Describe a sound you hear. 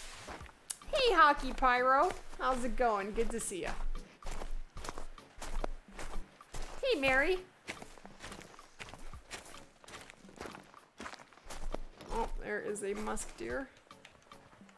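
A woman talks into a close microphone with animation.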